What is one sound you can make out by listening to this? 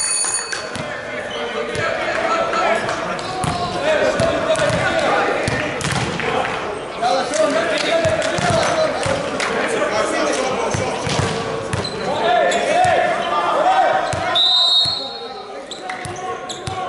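Volleyballs thump as players hit them, echoing in a large hall.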